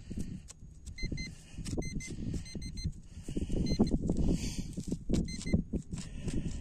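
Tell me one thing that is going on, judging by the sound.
A metal detector pinpointer beeps in short bursts.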